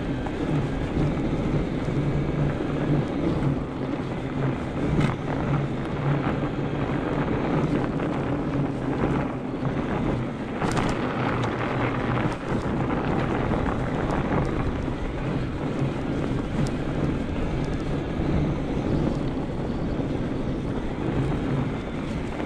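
Wind rumbles steadily past the rider outdoors.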